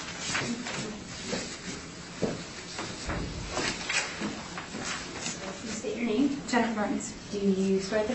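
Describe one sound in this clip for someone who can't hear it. Footsteps shuffle across a carpeted floor.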